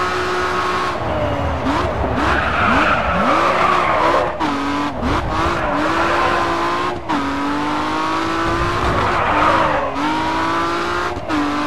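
Tyres screech as a car slides through a bend.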